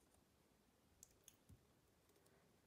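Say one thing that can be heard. Small plastic bricks click and snap together.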